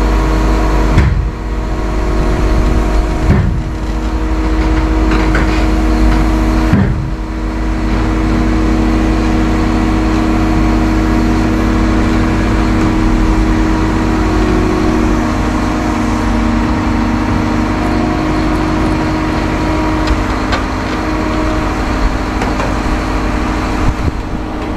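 Metal clanks and knocks as an excavator moves its arm.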